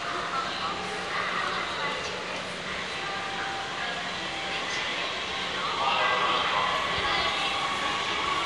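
A train rumbles into the station and squeals as it slows, echoing in a large hall.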